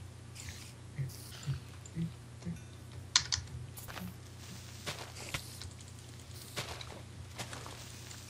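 A sword strikes a creature with quick, sharp hits.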